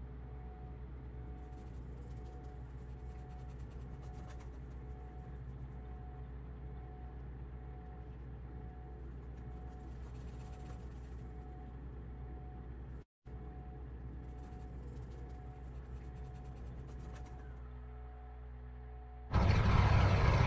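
A propeller engine hums low and steady, muffled as if heard from inside a small aircraft cabin.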